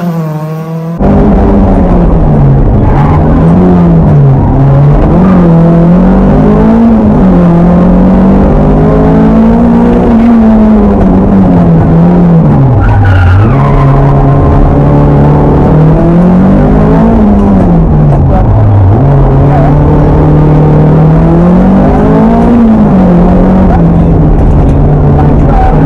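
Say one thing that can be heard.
A rally car engine roars loudly from inside the car, rising and falling in pitch with each gear change.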